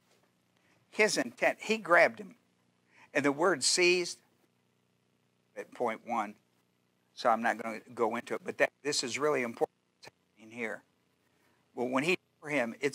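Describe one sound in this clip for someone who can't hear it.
An older man speaks with animation through a microphone.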